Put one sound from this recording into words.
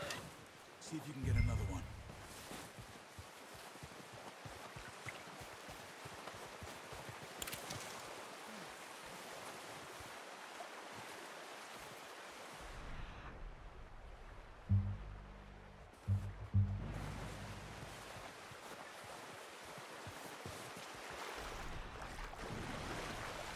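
A river rushes and gurgles nearby.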